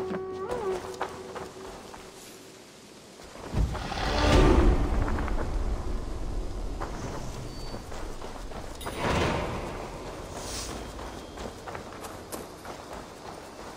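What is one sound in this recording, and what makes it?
Footsteps crunch quickly on a dirt path.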